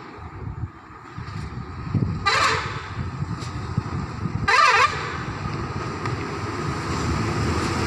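Truck engines grind uphill as the trucks approach.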